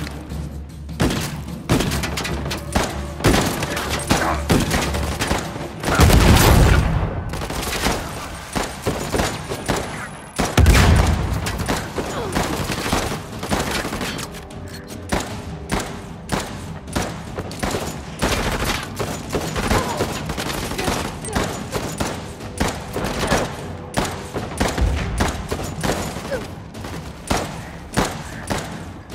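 Gunshots crack in rapid bursts, on and off.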